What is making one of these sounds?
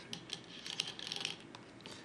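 A game stone clicks onto a wooden board.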